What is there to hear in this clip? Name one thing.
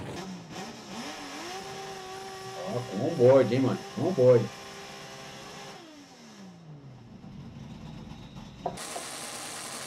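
A race car engine idles and revs loudly from inside the car.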